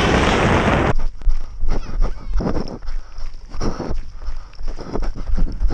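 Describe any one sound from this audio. Bicycle tyres roll over gravel.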